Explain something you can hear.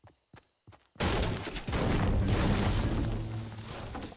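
A pickaxe strikes a tree trunk with hard wooden thuds.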